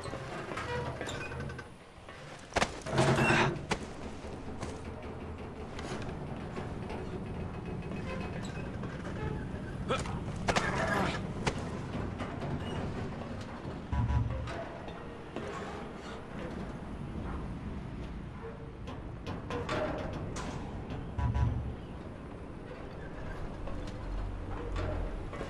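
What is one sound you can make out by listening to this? Footsteps clank on metal ladder rungs during a climb.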